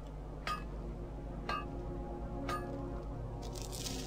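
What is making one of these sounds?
A magic spell crackles and shimmers.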